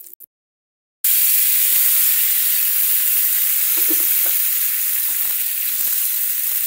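Vegetables sizzle steadily in hot oil in a pan.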